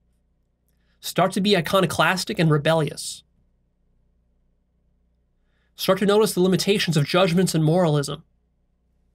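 A man speaks calmly and closely into a microphone, in two short phrases.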